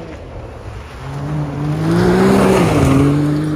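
Tyres crunch over gravel.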